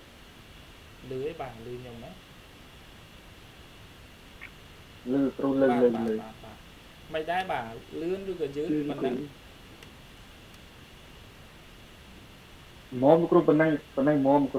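A young man speaks calmly over an online call, heard through a computer speaker.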